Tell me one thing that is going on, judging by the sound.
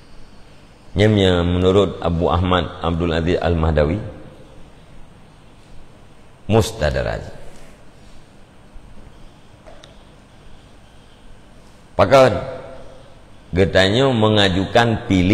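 A middle-aged man speaks with animation into a close microphone, pausing between phrases.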